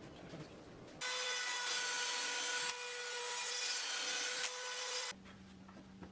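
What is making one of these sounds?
A cordless drill whirs, driving a screw into wood.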